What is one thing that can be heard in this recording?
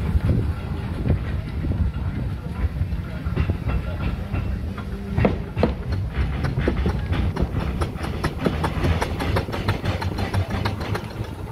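Heavy wheels rumble on a street.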